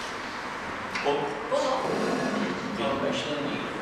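A chair scrapes as a man stands up.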